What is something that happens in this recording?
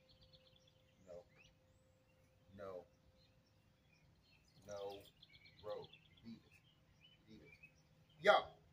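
A man calls out several times from a distance.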